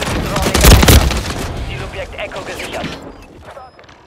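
A loud explosion bangs and rumbles.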